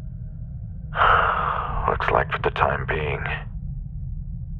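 A man speaks calmly over a crackly radio.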